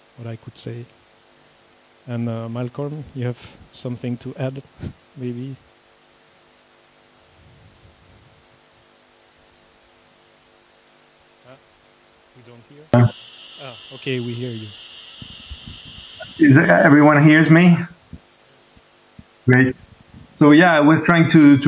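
A man speaks calmly into a microphone, in a room with a slight echo.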